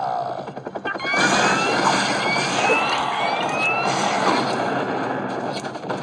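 Video game music and sound effects play from a tablet.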